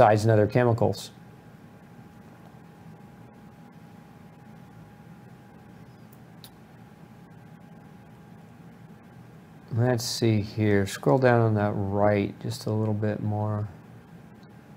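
A man speaks calmly and close to a microphone, pausing between phrases.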